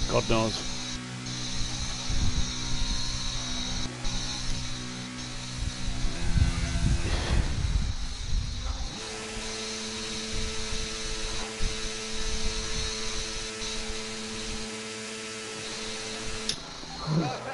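A racing car engine hums steadily at low speed.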